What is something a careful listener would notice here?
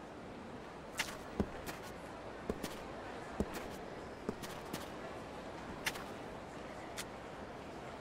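Footsteps tap on hard pavement.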